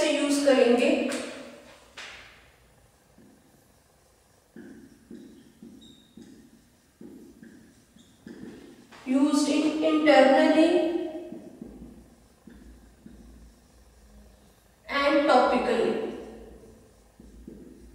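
A woman speaks clearly and calmly, close by, in short bursts.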